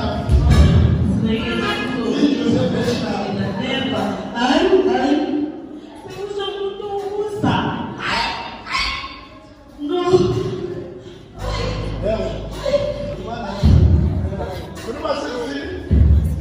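A man preaches loudly and with fervour into a microphone in an echoing hall.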